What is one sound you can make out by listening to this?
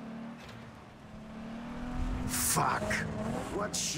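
A car engine hums as the car drives slowly.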